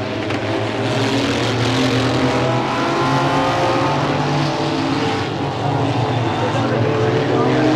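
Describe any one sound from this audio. Racing car engines roar loudly as they speed past.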